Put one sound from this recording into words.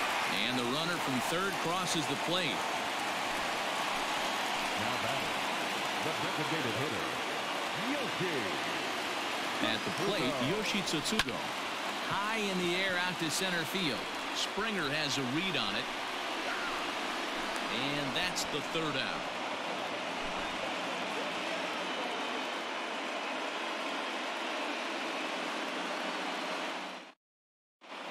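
A crowd murmurs and cheers in a large echoing stadium.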